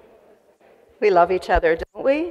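A woman speaks into a microphone over loudspeakers in a large echoing room.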